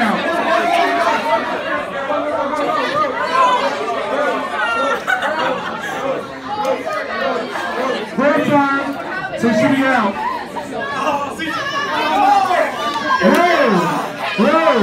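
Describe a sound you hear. A crowd of young men and women chatters and shouts loudly in an echoing room.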